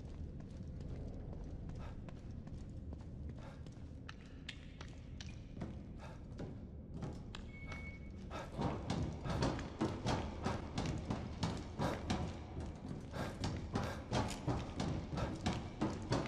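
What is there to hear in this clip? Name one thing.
Heavy footsteps clang and thud on metal stairs.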